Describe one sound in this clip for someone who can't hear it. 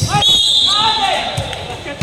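A basketball hits a backboard and rim.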